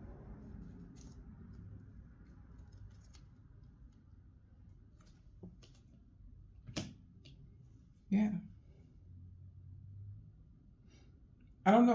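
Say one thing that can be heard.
Playing cards rustle and tap as they are laid down.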